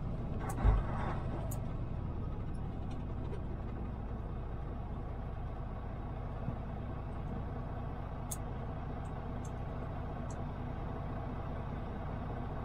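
A vehicle engine idles with a low, steady rumble.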